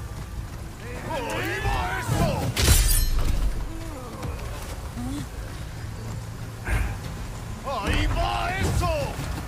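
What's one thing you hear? A man grunts and shouts angrily.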